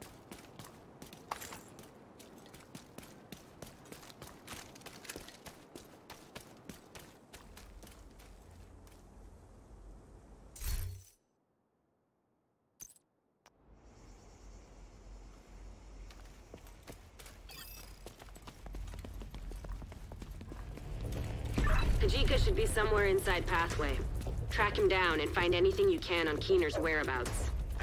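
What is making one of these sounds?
Quick footsteps tap on hard ground.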